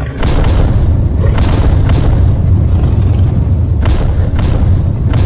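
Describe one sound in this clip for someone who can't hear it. Heavy blows land with sharp thuds as giant monsters fight.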